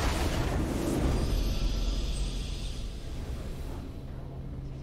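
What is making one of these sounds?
A triumphant game fanfare swells loudly and then fades away.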